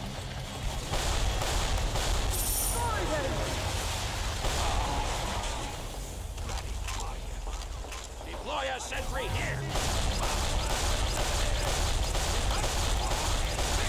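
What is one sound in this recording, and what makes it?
Guns fire rapidly in a video game battle.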